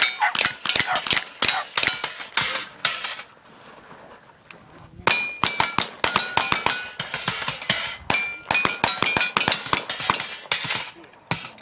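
Bullets ring off metal targets.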